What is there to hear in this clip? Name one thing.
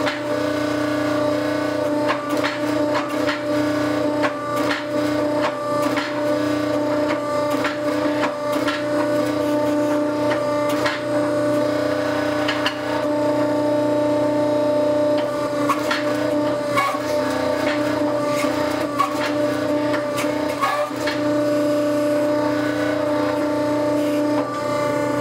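A hydraulic press hums steadily.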